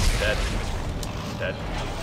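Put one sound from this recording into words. A weapon fires with a sharp, buzzing blast.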